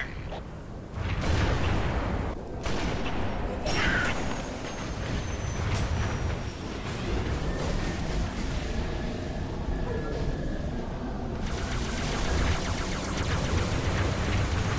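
A hovering vehicle's engine hums and roars steadily.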